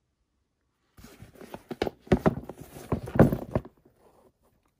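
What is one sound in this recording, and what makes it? A hand squeezes a leather sneaker with soft rubbing and creaking.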